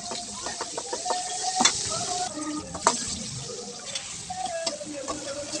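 A metal spatula scrapes and clanks against a wok while stirring.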